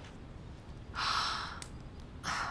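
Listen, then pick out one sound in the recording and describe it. A woman speaks nearby in a calm voice.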